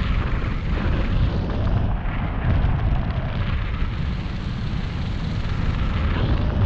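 Strong wind buffets and roars outdoors.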